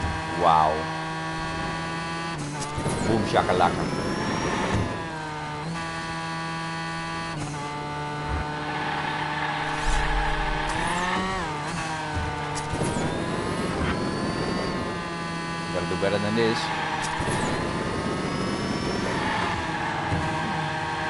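A racing car engine whines steadily at high speed, rising and falling in pitch.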